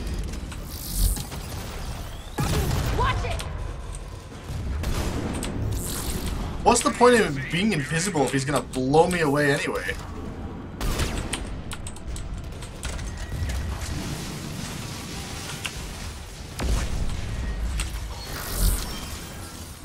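Sniper rifle shots ring out in a video game.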